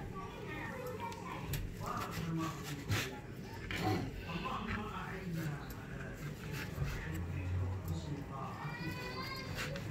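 A knife taps against a plastic cutting board.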